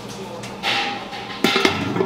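A metal lid clanks onto a steel pot.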